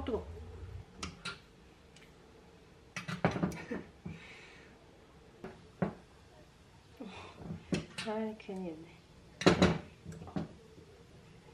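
A metal waffle pan clanks and clatters against a stove grate.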